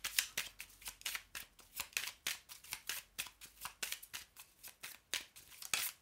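Playing cards riffle and flick rapidly as a deck is shuffled close by.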